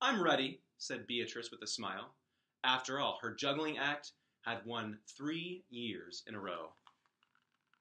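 A man reads aloud expressively, close to the microphone.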